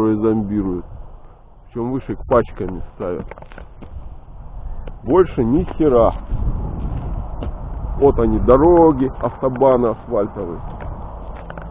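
A man speaks nearby in short bursts.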